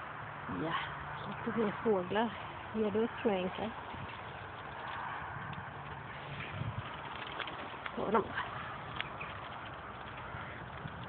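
A small dog's paws patter quickly on a paved road.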